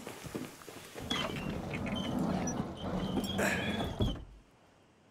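A wooden door creaks and thuds shut.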